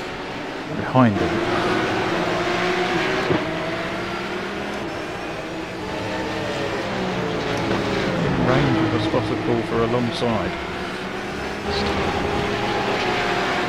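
Other racing cars roar past nearby.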